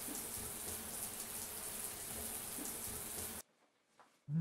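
A shower sprays water onto a man's back.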